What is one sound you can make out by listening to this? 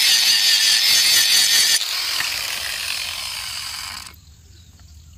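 An angle grinder grinds metal with a loud, harsh hiss, then winds down.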